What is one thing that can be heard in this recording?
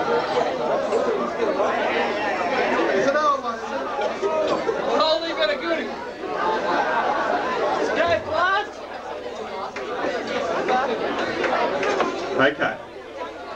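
A crowd talks and cheers loudly.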